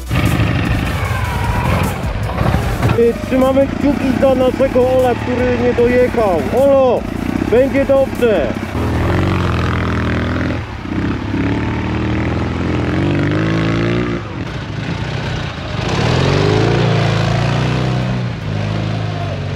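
A motorcycle engine runs and revs over muddy ground.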